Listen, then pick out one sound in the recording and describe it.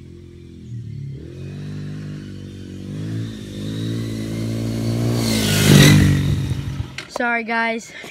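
A small motor engine whines and revs up as a vehicle drives closer.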